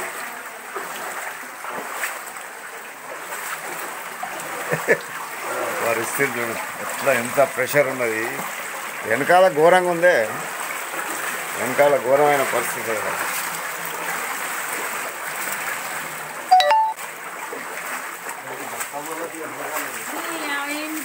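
Feet splash through shallow floodwater.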